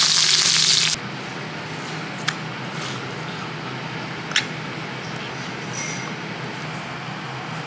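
A can opener clicks and cuts into a tin can.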